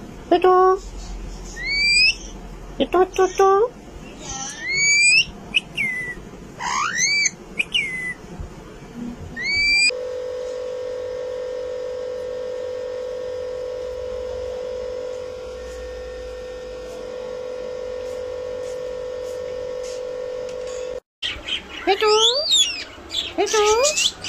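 A parrot screeches in short, shrill, rising calls close by.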